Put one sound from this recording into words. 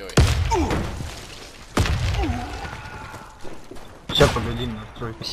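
Loud gunshots and blasts boom and ring out.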